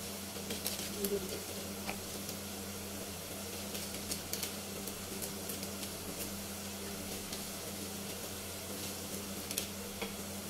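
Small objects click and tap as they are handled.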